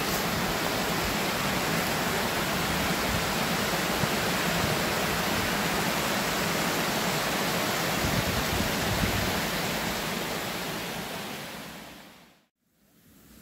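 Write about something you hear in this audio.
Water rushes and splashes loudly over rocks.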